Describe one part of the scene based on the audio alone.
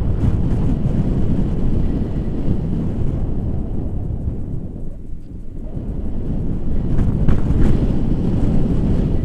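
Wind roars and buffets loudly against a microphone.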